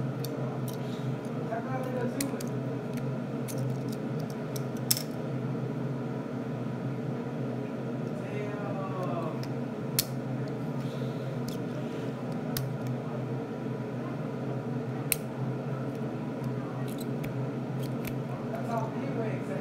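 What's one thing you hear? Small plastic toy parts click and snap together in someone's hands.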